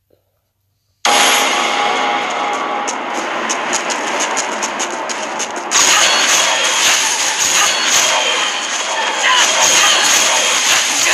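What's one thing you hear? Game music and battle sound effects play loudly.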